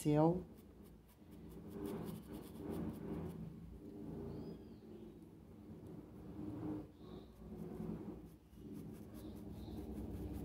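A pastel stick rubs softly on paper.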